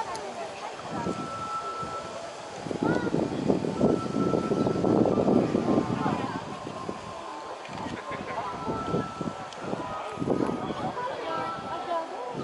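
Train wheels squeal on curved rails.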